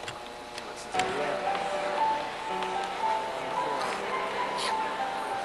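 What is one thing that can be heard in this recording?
A choir of children sings together close by.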